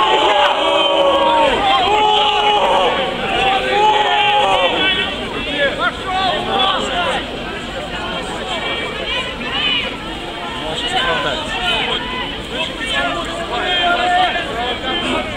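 A man speaks loudly through a megaphone outdoors.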